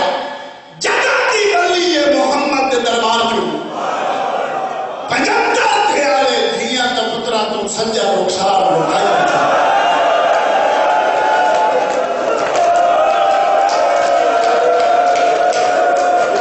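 A man sings a mournful chant loudly and passionately through a microphone, heard over loudspeakers.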